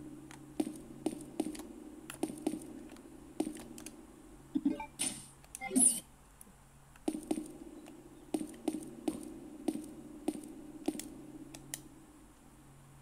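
Footsteps thud steadily on stone in a video game.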